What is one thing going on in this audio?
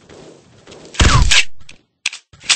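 A paintball marker fires a shot.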